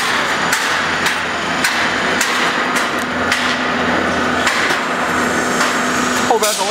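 Metal clanks sharply at a regular pace.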